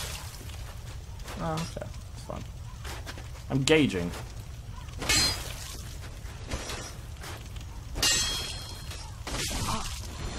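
A sword strikes a creature with heavy thuds.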